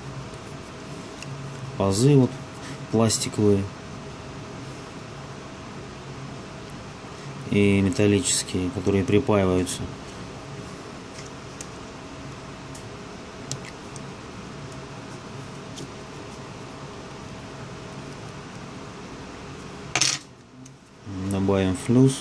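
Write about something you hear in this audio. Metal tweezers tap and click faintly against a small connector.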